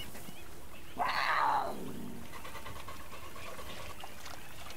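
Water splashes as an animal wades in.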